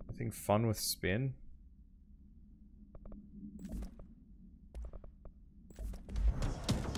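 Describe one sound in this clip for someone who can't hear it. Menu clicks sound in a game.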